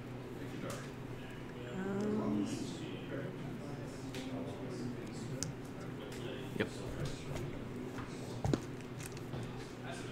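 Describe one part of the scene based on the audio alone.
Playing cards riffle and shuffle in someone's hands.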